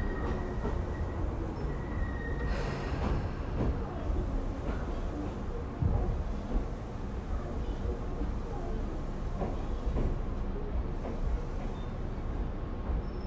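A train rumbles along the tracks with a low, steady roar.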